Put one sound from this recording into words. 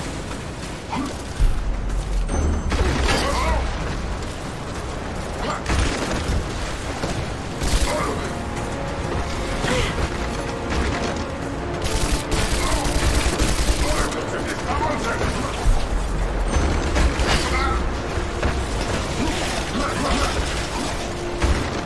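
A sword clangs against armour in a fight.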